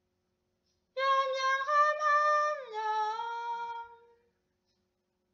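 A young woman sings a long, sustained note close by, then glides down to a lower note.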